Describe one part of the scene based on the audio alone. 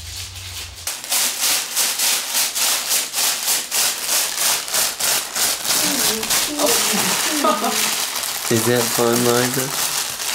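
Paper crinkles and rustles rapidly as a baby pulls at it.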